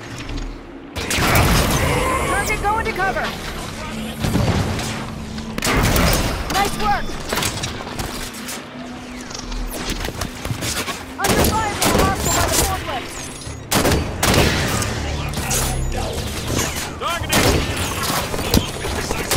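Futuristic guns fire in rapid bursts.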